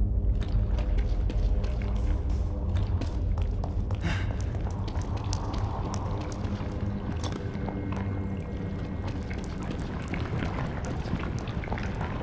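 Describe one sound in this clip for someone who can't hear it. Footsteps thud on stone steps.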